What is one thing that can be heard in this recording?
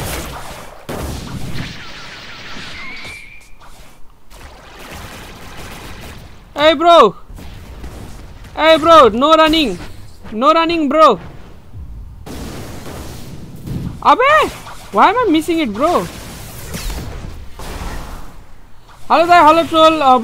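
Magic attacks whoosh and crackle in bursts.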